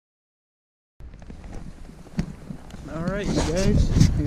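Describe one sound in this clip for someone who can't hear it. A man talks close up, outdoors in wind.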